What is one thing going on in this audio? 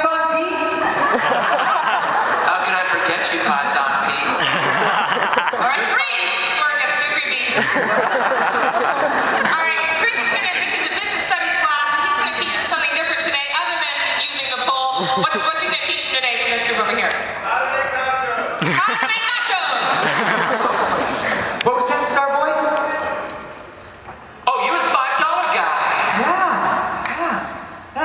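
A man speaks with animation through a loudspeaker in a large echoing hall.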